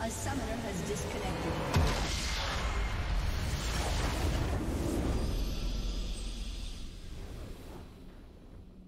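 Magic blasts crash and whoosh in a loud burst, then fade away.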